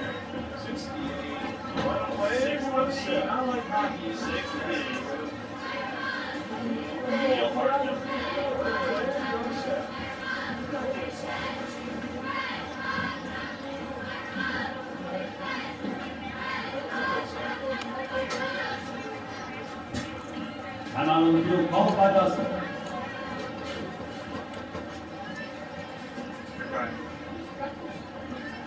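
A crowd murmurs and calls out across an open stadium.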